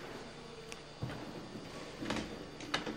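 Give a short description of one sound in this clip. A door handle clicks as it is turned.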